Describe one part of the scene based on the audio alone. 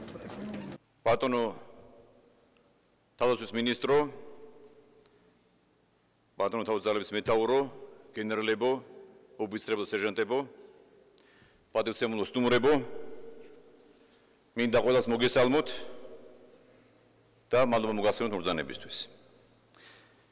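A man speaks calmly into a microphone in an echoing hall, pausing between phrases.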